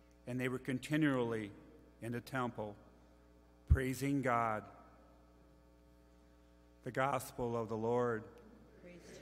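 A man reads aloud into a microphone, his voice echoing in a large hall.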